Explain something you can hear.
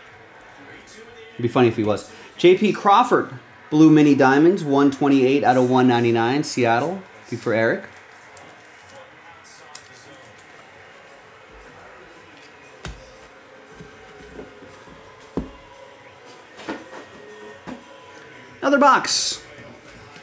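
Cards rustle and tap as hands handle them.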